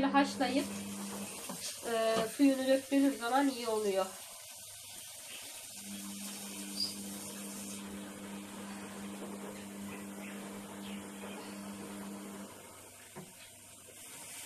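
Tap water splashes into a metal pot.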